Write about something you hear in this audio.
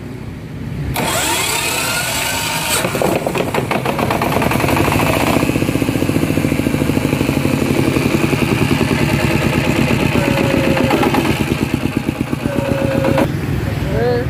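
A diesel engine chugs steadily nearby.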